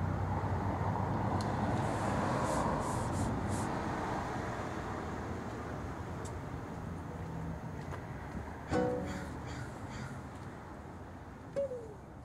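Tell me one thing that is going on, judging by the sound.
A man strums an acoustic guitar outdoors.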